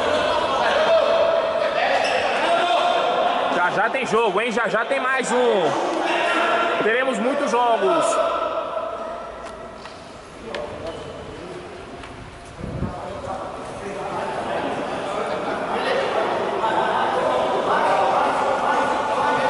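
Young men shout and call out to each other in an echoing indoor hall.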